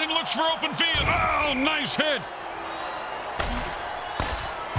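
Players collide with heavy thuds.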